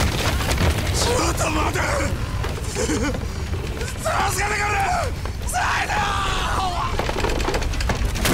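A man shouts in desperation, close by.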